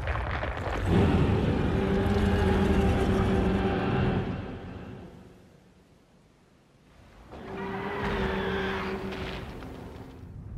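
A huge creature lets out a long, deep groaning roar.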